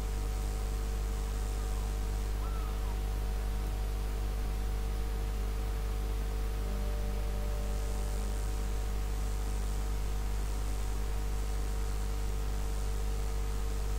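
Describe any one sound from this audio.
Water laps gently against a ship's hull.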